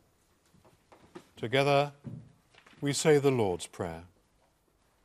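An elderly man speaks in a large echoing room.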